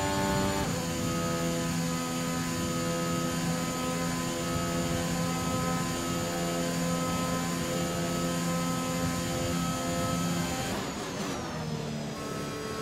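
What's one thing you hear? A racing car engine screams at high revs, shifting gears and slowing for a corner.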